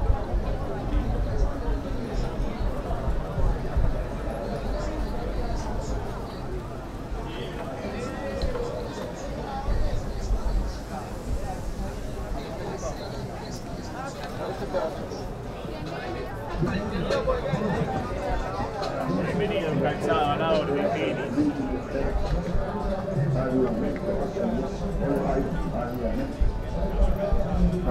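A busy street crowd chatters nearby outdoors.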